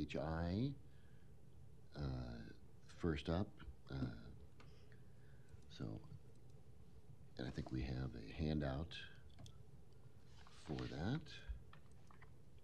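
A man speaks calmly into a microphone in short bursts.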